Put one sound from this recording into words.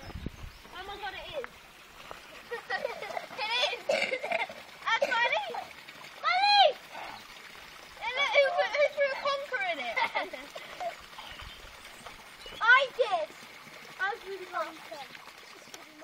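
Young children talk and call out excitedly nearby.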